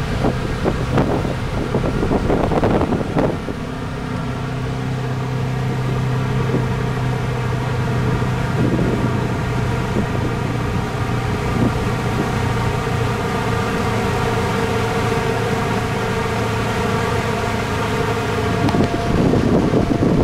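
A boat's outboard motor hums steadily.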